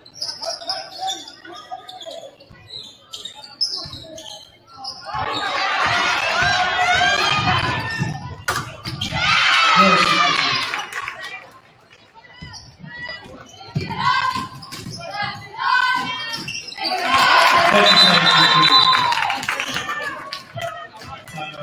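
A basketball bounces on a wooden floor with dull thuds.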